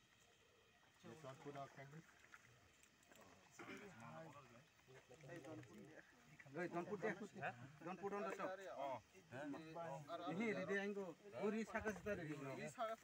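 Men talk quietly nearby outdoors.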